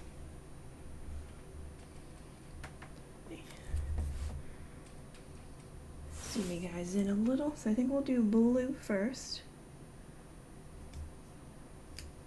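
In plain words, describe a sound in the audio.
Paper rustles as hands handle stickers and pages.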